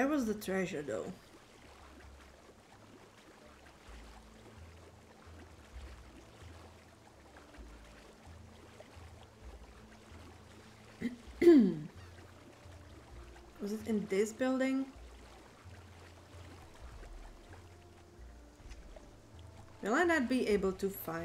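Water splashes softly as a swimmer strokes through it.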